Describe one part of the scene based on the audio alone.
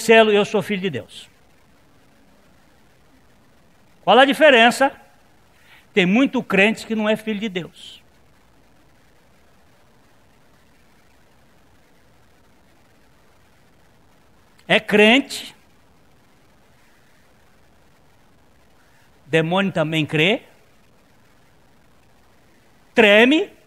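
A middle-aged man speaks with animation into a microphone, in short bursts with long pauses.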